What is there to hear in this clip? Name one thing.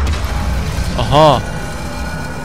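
A game plays a short musical chime.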